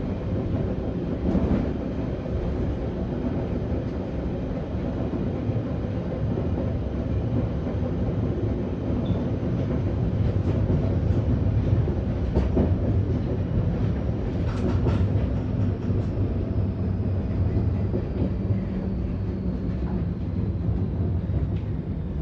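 A train rumbles steadily along the track.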